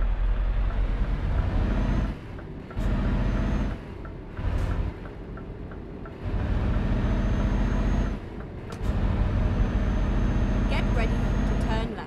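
A truck engine revs and rumbles as the truck drives off.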